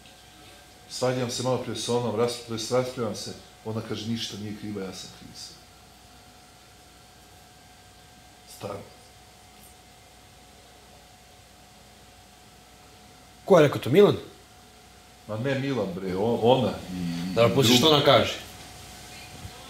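A man talks casually nearby, in short bursts.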